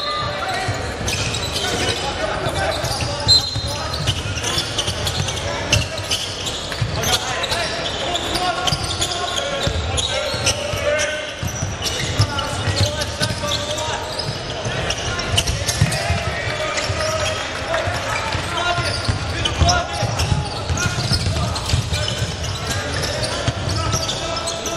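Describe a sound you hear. Basketball shoes squeak sharply on a wooden court.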